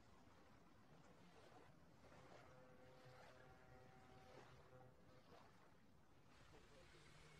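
Water laps gently against a pier.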